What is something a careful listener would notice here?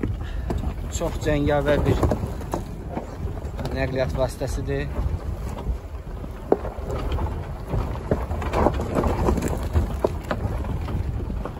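A man talks nearby in a relaxed voice.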